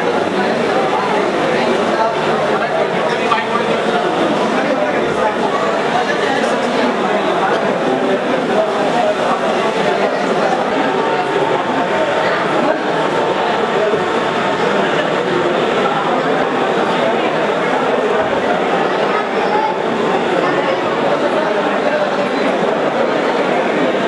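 A crowd of men and women murmur and chatter indoors.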